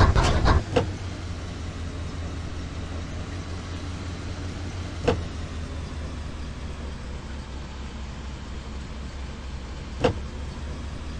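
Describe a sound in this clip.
Thumps sound as the car bumps over rocks.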